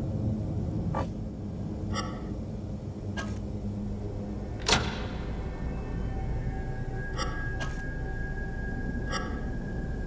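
Electrical switches click and clunk into place one after another.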